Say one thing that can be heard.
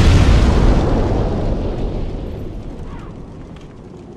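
A fireball roars and explodes.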